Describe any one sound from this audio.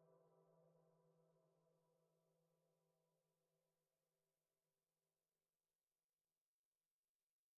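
A fidget spinner whirs close by with a steady hum that slowly fades.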